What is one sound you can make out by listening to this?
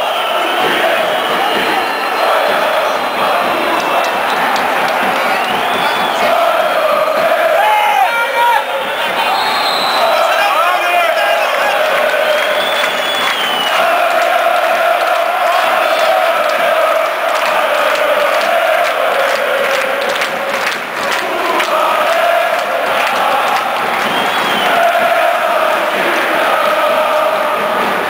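A large crowd of fans chants and sings loudly in unison in an open stadium.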